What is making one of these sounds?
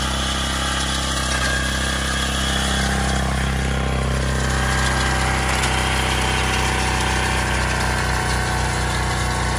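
A rotary tiller churns through soil.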